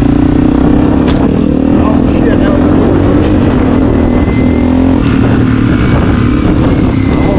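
A dirt bike engine roars loudly up close, shifting pitch as it speeds along.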